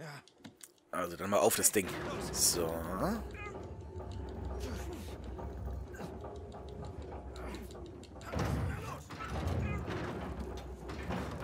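Two men grunt and strain with effort.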